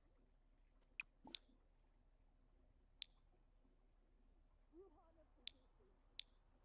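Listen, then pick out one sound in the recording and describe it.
Short, sharp clicks from a game interface sound now and then.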